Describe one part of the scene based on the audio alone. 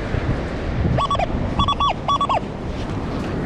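A metal detector beeps in short bursts.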